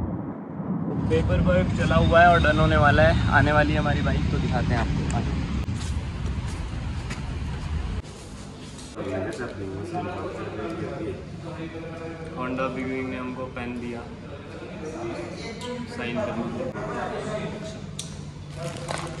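A young man speaks with animation, close to the microphone.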